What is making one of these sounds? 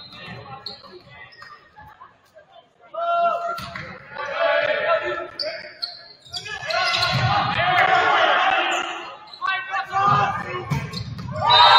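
A volleyball is struck with dull thumps.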